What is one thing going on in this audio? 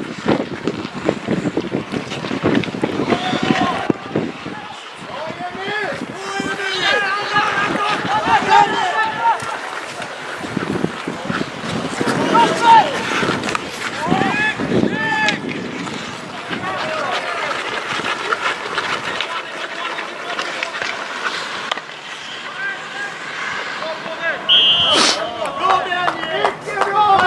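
Skate blades scrape across ice outdoors.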